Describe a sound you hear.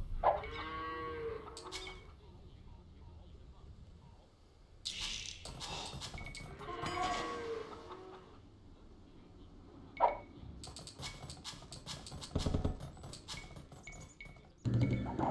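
Short game chimes and clicks sound now and then.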